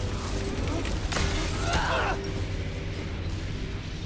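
A heavy impact thuds as a body hits the ground.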